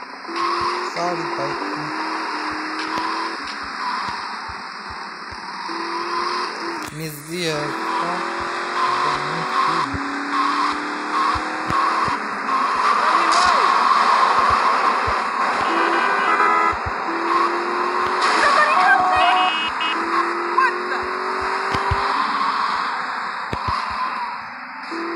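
A car engine hums steadily and changes pitch as the car speeds up and slows down.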